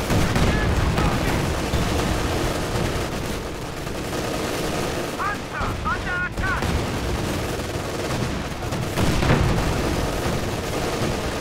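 Explosions boom and rumble continuously.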